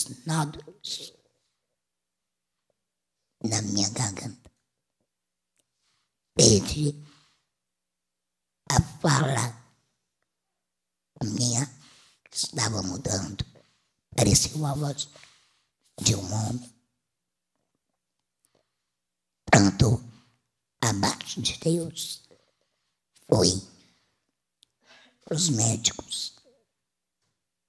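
A woman speaks calmly into a microphone, pausing between phrases.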